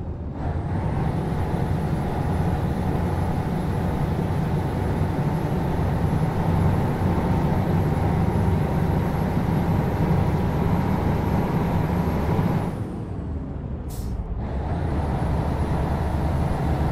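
A truck engine drones steadily at a low pitch, easing off briefly near the end.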